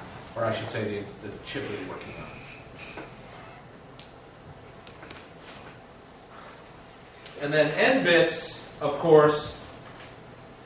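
A man speaks calmly in an echoing room, heard from a distance.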